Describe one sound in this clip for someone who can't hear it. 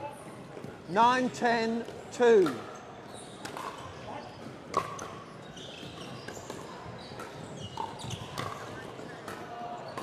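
Paddles strike a plastic ball with sharp pops in a large echoing hall.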